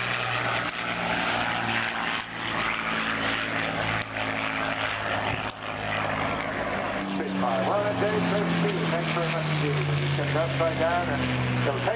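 A propeller plane's engine drones steadily overhead, rising and falling in pitch as it passes.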